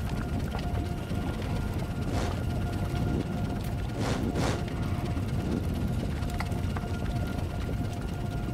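Lava bubbles and hisses steadily in a video game.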